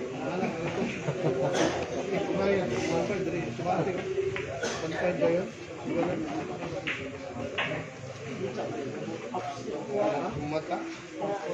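A crowd of people chatters in the background throughout.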